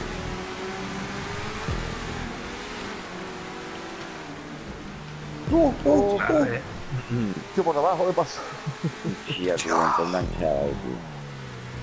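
A car engine roars steadily as it races.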